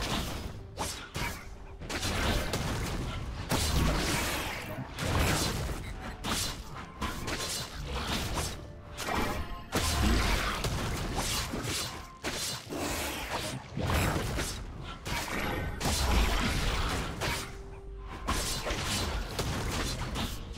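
Game spells and blows crash and crackle in a fast fight.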